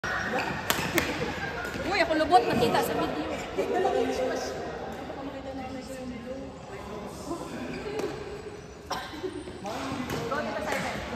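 Young women and men call out and chatter with animation in an echoing hall.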